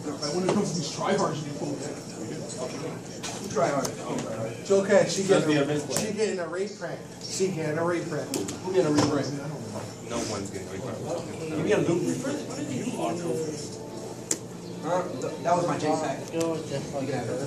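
Playing cards are shuffled and slapped on a table.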